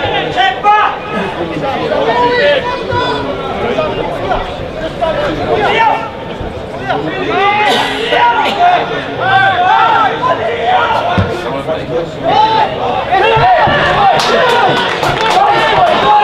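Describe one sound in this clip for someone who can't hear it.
Players shout to each other outdoors on an open field.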